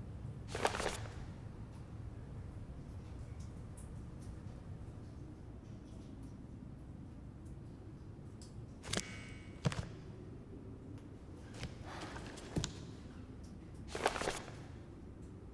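Paper pages rustle as a book is opened and closed.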